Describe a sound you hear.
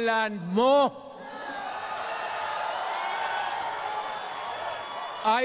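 A large crowd cheers and murmurs.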